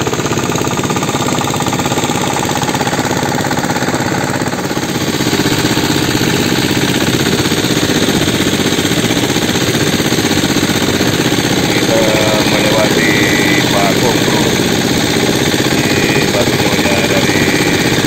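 A boat engine drones loudly and steadily close by.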